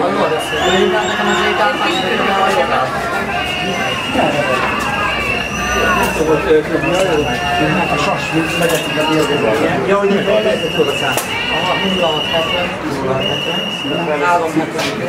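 Men and women talk over one another close by.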